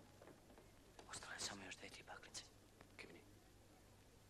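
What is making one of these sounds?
A young man speaks quietly nearby.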